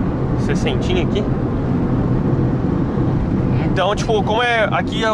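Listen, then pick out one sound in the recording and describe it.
A young woman talks with animation close by inside the car.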